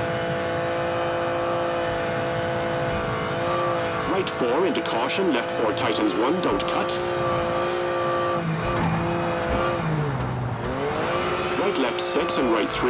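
A rally car engine drones steadily, its pitch dropping as the car slows.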